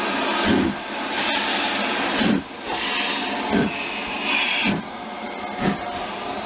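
A steam locomotive's wheels and rods clank as it rolls slowly past.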